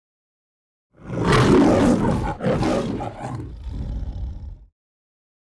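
A lion roars loudly twice, with a deep rumbling growl.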